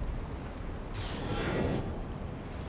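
A spell crackles and bursts with a bright whoosh.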